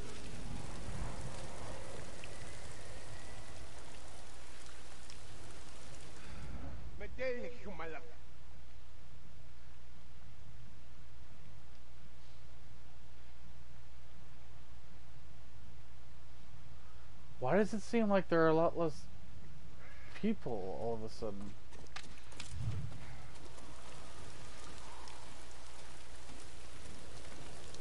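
Tall grass rustles softly as someone creeps through it.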